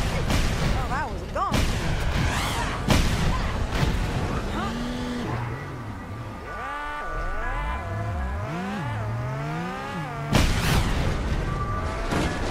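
Racing car engines roar and whine, rising and falling in pitch.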